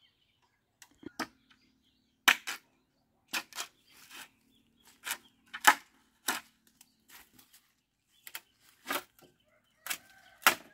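A machete chops into bamboo with sharp, repeated blows.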